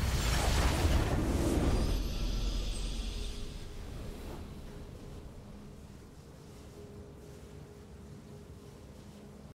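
Triumphant game music plays softly.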